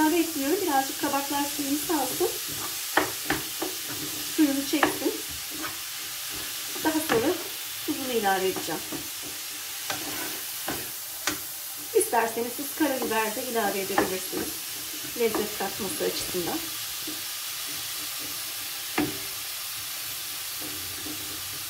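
A wooden spatula stirs and scrapes vegetables in a pan.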